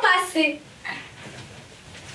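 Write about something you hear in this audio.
A voice speaks in a high, animated puppet voice close by.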